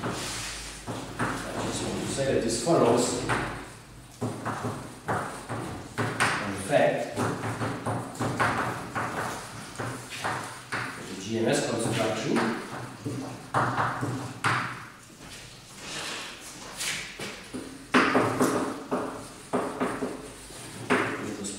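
An elderly man lectures calmly in an echoing room.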